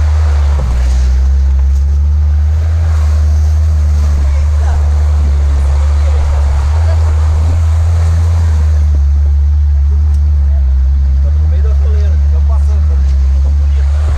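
Branches scrape and brush against a vehicle.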